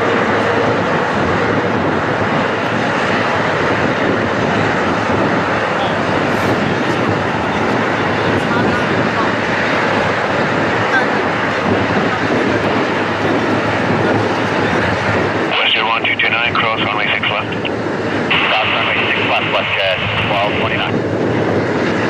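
A twin-engine jet airliner roars at takeoff thrust as it rolls down the runway and climbs away.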